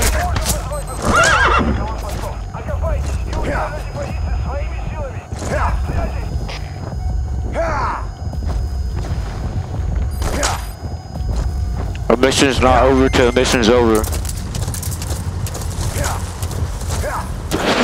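A horse gallops with steady thudding hoofbeats.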